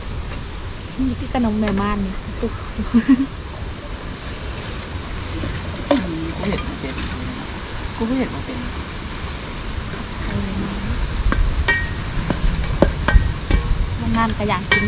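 A second young woman talks softly nearby.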